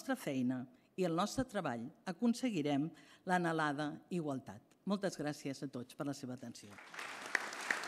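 An older woman speaks calmly into a microphone.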